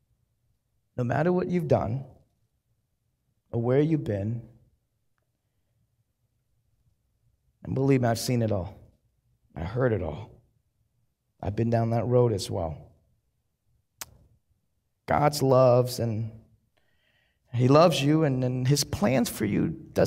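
A man speaks slowly and deliberately through a microphone, with pauses between phrases.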